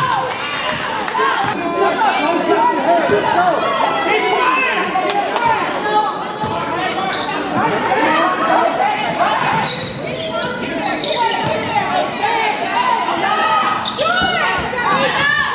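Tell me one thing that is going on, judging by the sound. A crowd of spectators chatters and cheers loudly in an echoing gym.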